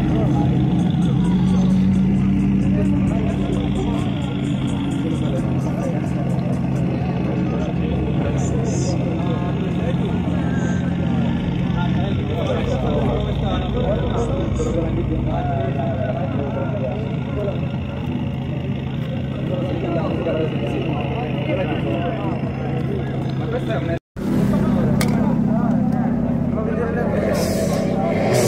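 A crowd of people chatter in the open air.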